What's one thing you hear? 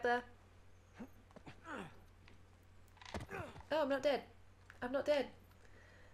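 A young woman talks and exclaims with animation close to a microphone.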